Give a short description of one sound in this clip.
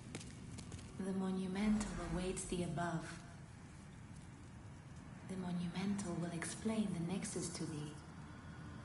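A woman speaks calmly and quietly, close by.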